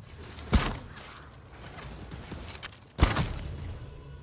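Heavy booming impacts hit twice.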